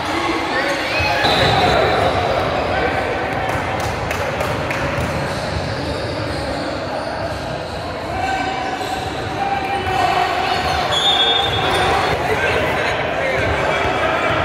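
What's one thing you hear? Voices of players and spectators chatter and call out in a large echoing gym.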